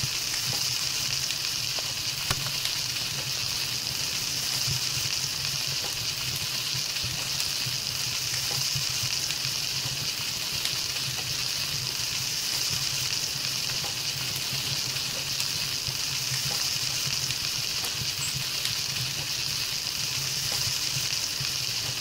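A fire crackles steadily.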